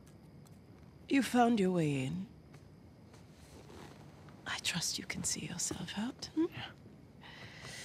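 An elderly woman speaks calmly and coolly.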